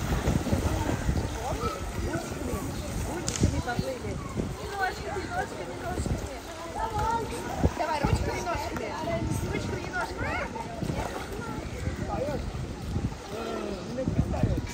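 Children shout and chatter playfully nearby, outdoors.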